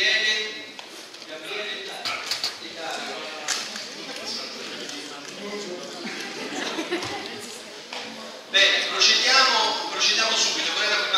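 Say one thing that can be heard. A man speaks to an audience through a microphone.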